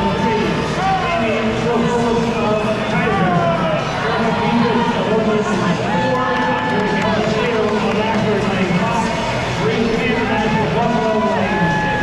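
A crowd of young people cheers and shouts loudly in a large echoing hall.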